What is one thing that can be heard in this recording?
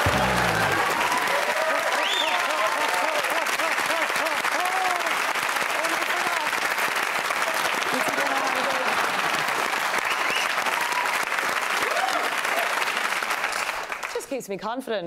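A studio audience applauds and cheers loudly.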